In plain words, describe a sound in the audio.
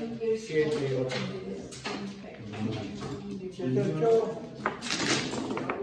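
Tiles clack as they are pushed and set down.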